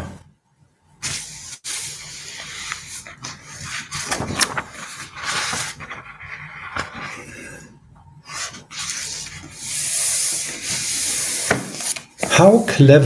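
Paper rustles close to a microphone.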